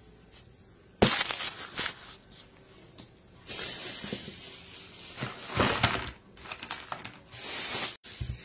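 Fabric rustles and brushes against a phone microphone.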